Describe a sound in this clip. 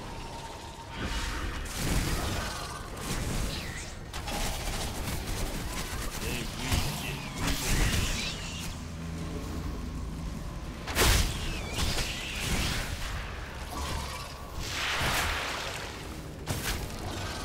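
Spell blasts and weapon hits burst out in a fast game battle.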